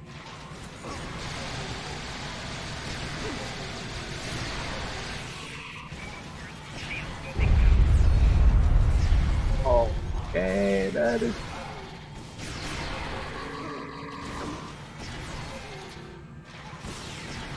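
Game weapons fire and energy blasts crackle throughout a fight.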